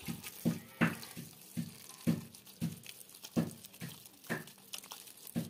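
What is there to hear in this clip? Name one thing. Flip-flops slap and squelch on wet ground with each step.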